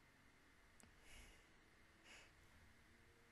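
A young woman breathes close to a microphone.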